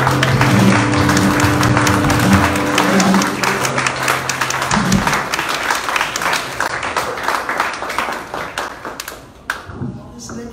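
An audience claps in a large room.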